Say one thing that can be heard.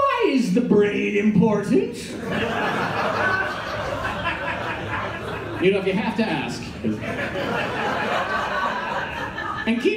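A middle-aged man speaks with animation into a microphone, heard through loudspeakers in a large room.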